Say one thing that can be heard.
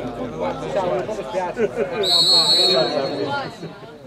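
A football is kicked hard with a dull thud.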